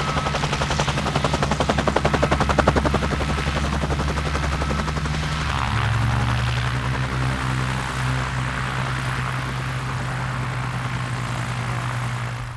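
A helicopter's rotor thumps rapidly close by.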